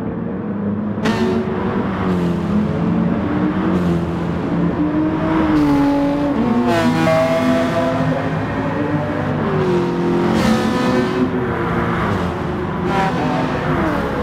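Racing cars whoosh past close by.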